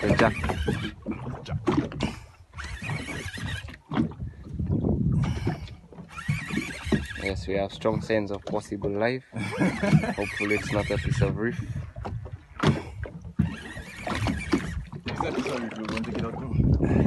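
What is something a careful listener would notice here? Wind buffets across open water.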